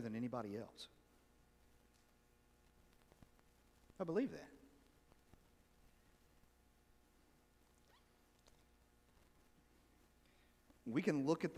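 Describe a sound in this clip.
A man speaks calmly with long pauses, heard through a microphone in a large echoing hall.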